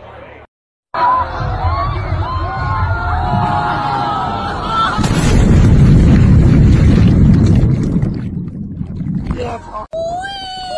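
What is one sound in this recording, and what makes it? A crowd of young people shouts and screams in water.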